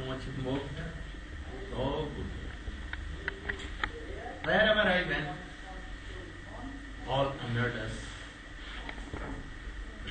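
An elderly man speaks calmly nearby.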